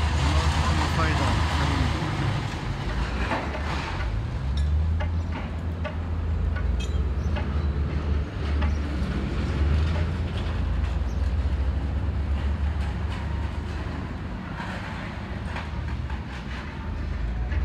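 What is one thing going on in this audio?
Strong wind blows and rumbles outdoors.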